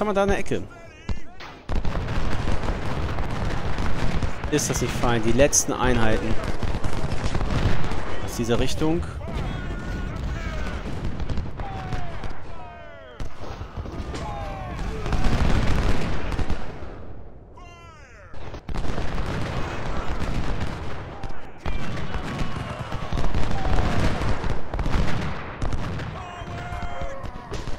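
Cannons boom and muskets crackle in a battle.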